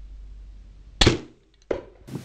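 A bow string snaps as an arrow is released.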